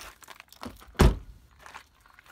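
A car door slams shut with a heavy thud.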